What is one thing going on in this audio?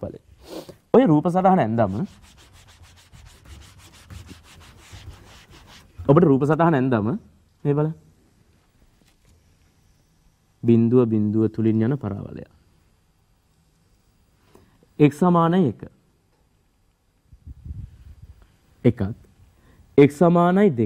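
A man speaks calmly in short phrases, explaining.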